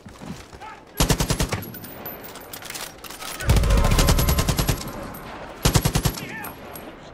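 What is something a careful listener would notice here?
A rifle fires rapid bursts of loud shots at close range.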